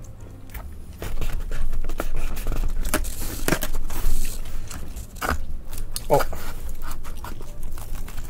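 Pizza crust crackles and tears as hands pull slices apart.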